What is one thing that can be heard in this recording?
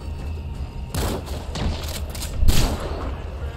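A rifle fires in a video game.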